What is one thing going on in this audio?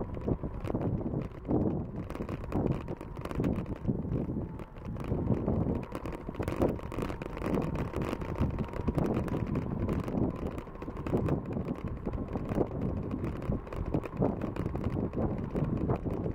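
Wind rumbles and buffets the microphone outdoors.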